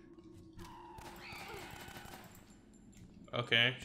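A pistol fires several shots.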